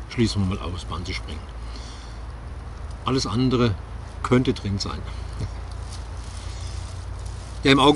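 A man speaks calmly close by, outdoors.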